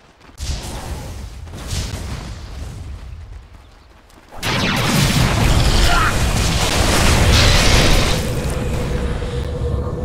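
Magic blasts and impacts burst in a fight.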